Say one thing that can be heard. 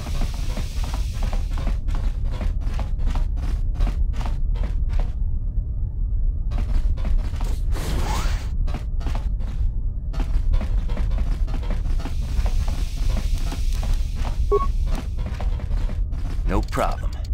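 Quick footsteps run across a hard metal floor.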